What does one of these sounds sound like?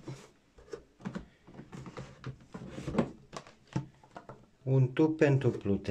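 A plastic tube knocks and rattles against the box.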